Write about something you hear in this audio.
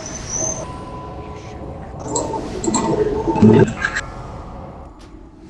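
Spell effects crackle and boom in a game battle.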